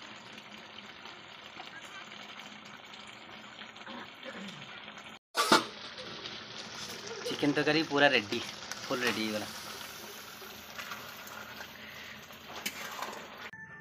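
Food sizzles and bubbles steadily in a pan.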